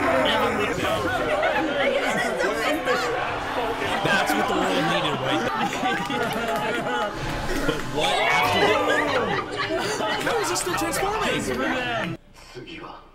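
Several young men cheer and shout excitedly.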